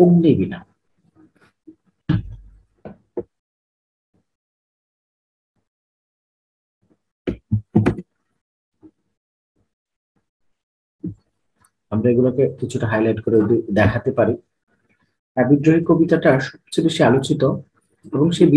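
A man speaks calmly into a close microphone, reading out with pauses.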